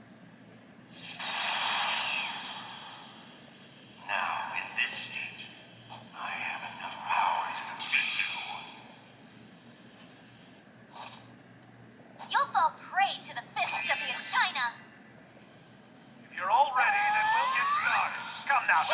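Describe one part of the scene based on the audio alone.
Energy blasts and whooshes from a video game play through a small speaker.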